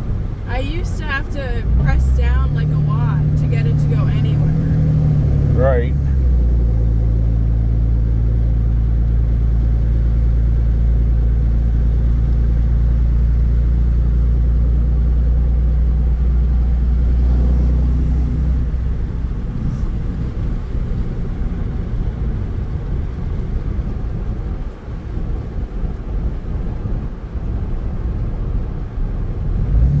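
A large truck engine rumbles and roars loudly as the truck speeds up, then settles into a quieter hum.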